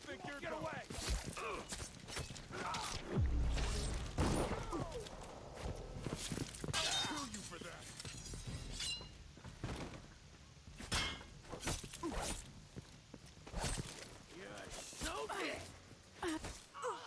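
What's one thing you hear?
A blade slashes and strikes with sharp hits.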